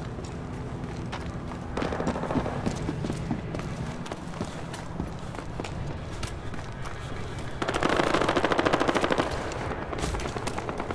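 Footsteps crunch over snow and wooden boards.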